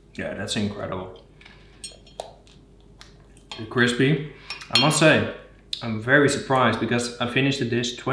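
A fork clinks and scrapes against a plate.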